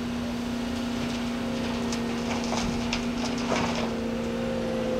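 Earth and stones tip from an excavator bucket into a dump truck's metal bed.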